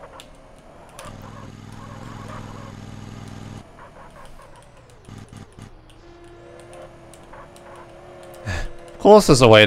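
A forklift engine hums steadily.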